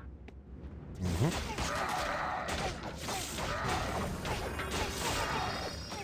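Gunfire and battle noises clatter and crackle from a video game.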